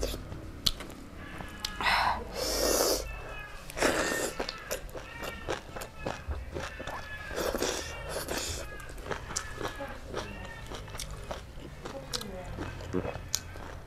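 A young woman's fingers squish and mix rice and meat close to a microphone.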